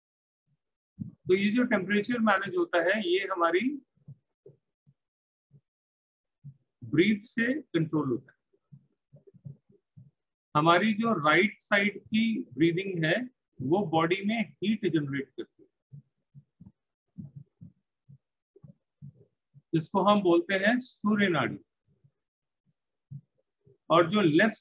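A man speaks calmly and closely into a microphone, in short bursts with pauses.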